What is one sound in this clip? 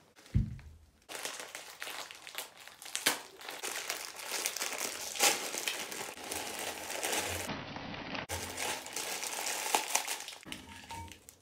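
A plastic packet crinkles and rustles.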